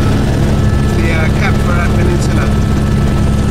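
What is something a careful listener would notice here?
A man talks close to the microphone over the engine noise.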